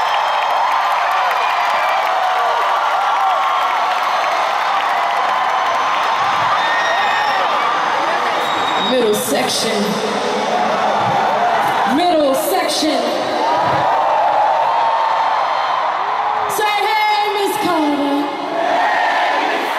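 A crowd cheers and screams loudly throughout, as in a large arena.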